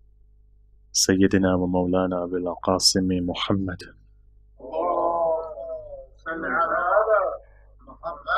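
A man speaks into a microphone, reciting in a close, amplified voice.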